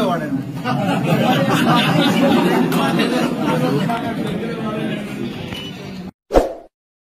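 A crowd of men and women chatters and cheers loudly at close range.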